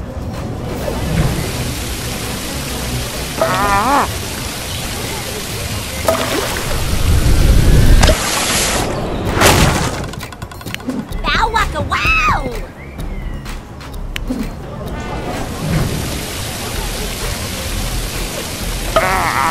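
Water fountains spray and splash steadily.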